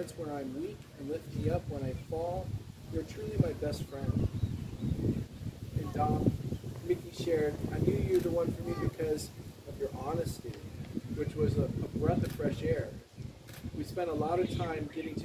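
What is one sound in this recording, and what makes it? A man speaks calmly nearby outdoors.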